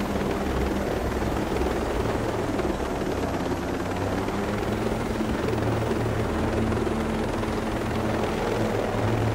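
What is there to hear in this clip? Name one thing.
A helicopter's rotor blades thump steadily close by.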